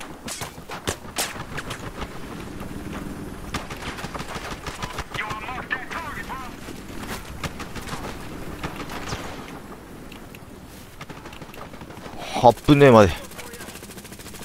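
An assault rifle fires in short bursts.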